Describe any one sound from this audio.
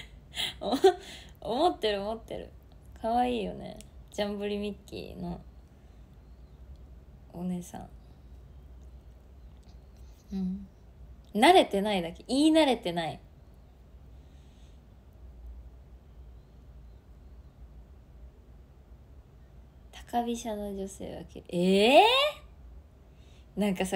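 A young woman speaks brightly and with animation close to a microphone, in short bursts with pauses.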